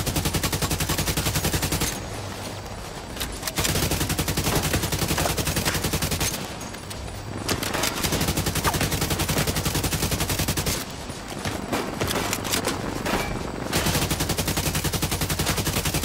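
An automatic rifle fires in long, rapid bursts.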